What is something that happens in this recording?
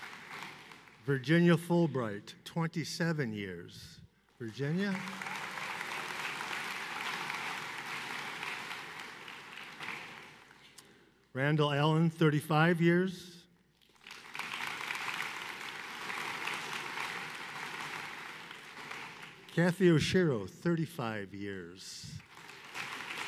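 A man reads out names over a loudspeaker in a large echoing hall.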